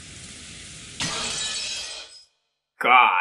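Glass shatters with a sharp crash.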